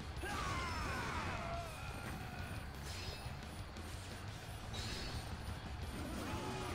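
Swords swish and clash in a noisy battle.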